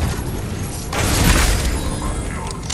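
A loot chest bursts open with a shimmering chime.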